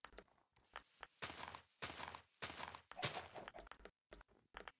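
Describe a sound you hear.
A block of leaves crunches as it is broken.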